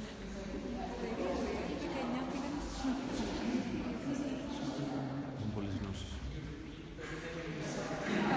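A group of adults chat and murmur nearby in a large echoing hall.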